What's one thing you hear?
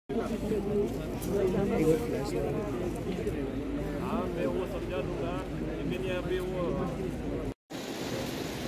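Several people talk and chatter close by.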